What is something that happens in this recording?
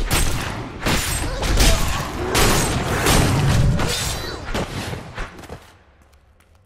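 Blows clash and thud in a loud, fast fight.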